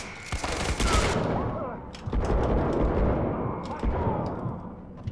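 A rifle fires loud shots that echo.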